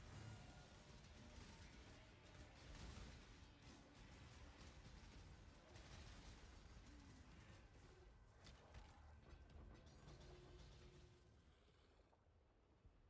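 Video game combat effects crackle and burst with rapid spell and blade impacts.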